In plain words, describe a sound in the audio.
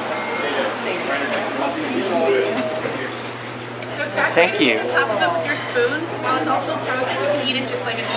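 Several women talk and laugh close by.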